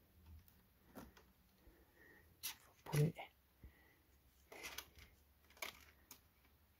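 A small plastic drive taps and clicks against a metal case.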